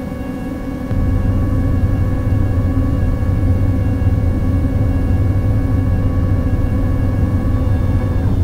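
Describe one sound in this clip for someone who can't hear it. A deep roar of a landing airliner swells suddenly and stays loud.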